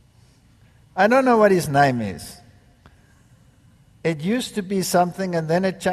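An elderly man speaks with emphasis through a microphone.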